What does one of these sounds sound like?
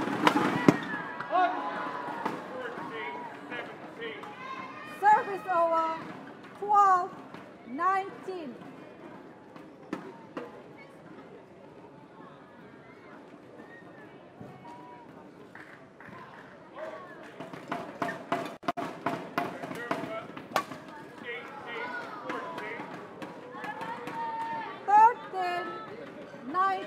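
A crowd in a large hall shouts and cheers.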